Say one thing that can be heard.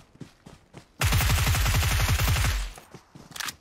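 Rapid gunfire rattles in a burst.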